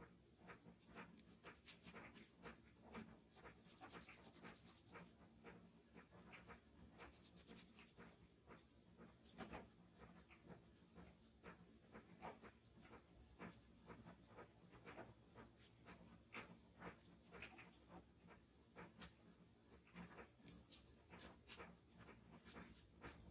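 A brush rubs and dabs softly on paper, close by.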